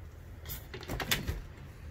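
A fridge door clicks as it is pulled open.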